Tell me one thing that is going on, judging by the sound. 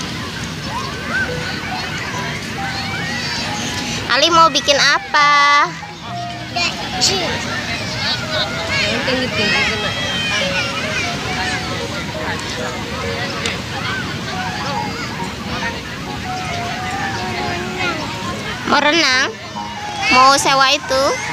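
Many voices chatter nearby outdoors.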